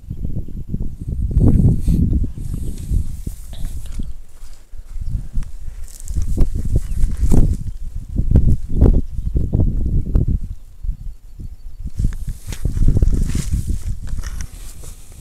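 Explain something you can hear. Footsteps crunch on dry grass.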